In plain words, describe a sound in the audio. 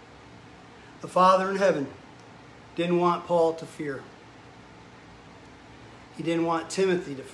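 A middle-aged man speaks calmly in short phrases close to the microphone.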